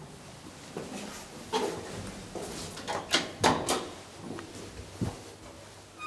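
An elevator button clicks when pressed.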